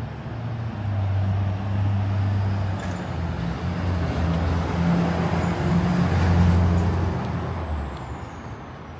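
A truck engine rumbles past nearby and fades away.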